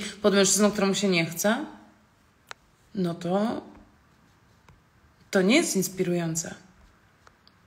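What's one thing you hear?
A young woman speaks calmly and close up, in short bursts with pauses.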